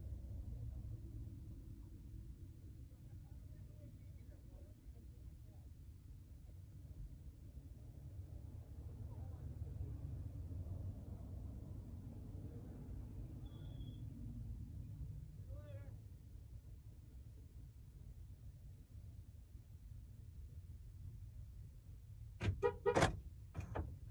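A car engine hums low and steady inside the cabin.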